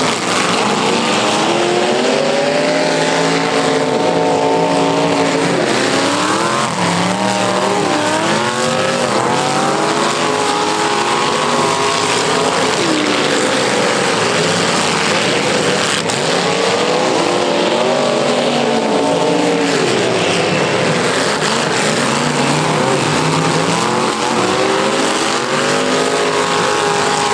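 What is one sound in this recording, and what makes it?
Several car engines roar and rev loudly outdoors.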